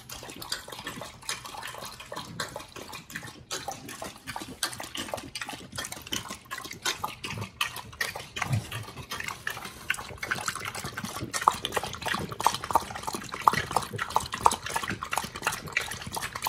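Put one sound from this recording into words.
Dogs lap water noisily and quickly.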